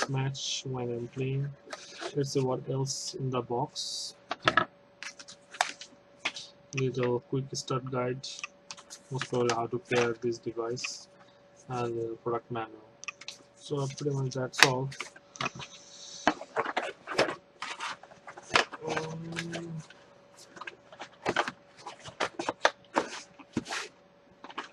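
Cardboard and paper rustle and scrape as a box is opened.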